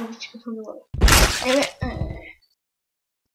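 A loud wet crunch bursts out as a game figure smashes apart.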